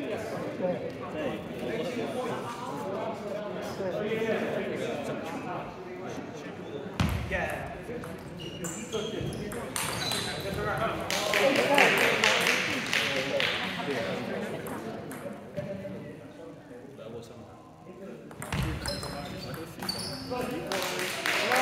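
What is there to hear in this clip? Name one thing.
Men's voices murmur and chatter in a large echoing hall.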